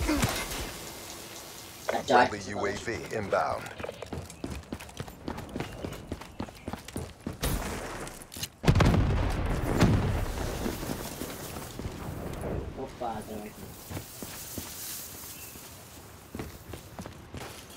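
Footsteps thud rapidly in a game.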